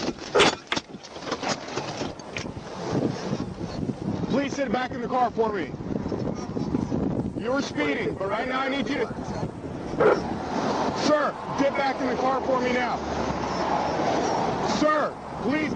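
A man speaks outdoors at a distance.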